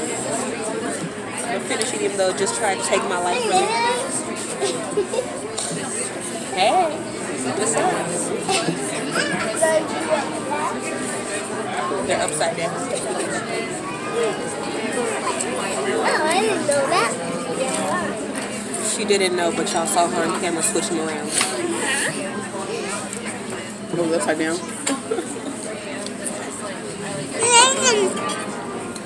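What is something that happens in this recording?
A girl talks and laughs with animation close by.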